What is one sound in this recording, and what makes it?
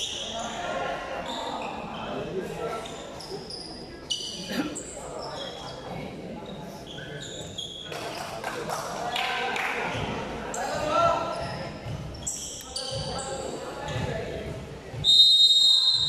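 A crowd of young people chatters and calls out in a large echoing hall.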